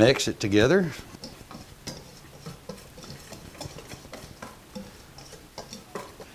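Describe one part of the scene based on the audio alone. A wire whisk scrapes and taps against a metal bowl of flour.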